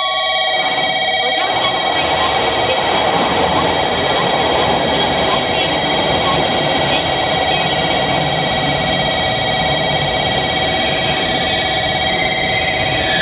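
A train rolls past close by with a steady rumble.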